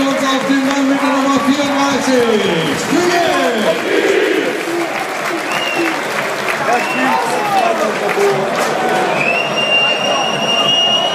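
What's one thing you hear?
A large stadium crowd chants and sings loudly, echoing around the stands.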